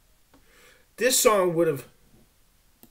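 A man speaks briefly and loudly, close to a microphone.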